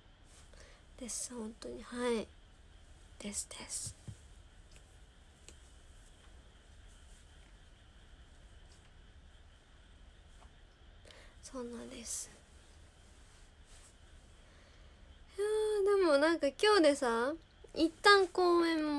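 A young woman speaks softly and close by, in short bursts with pauses.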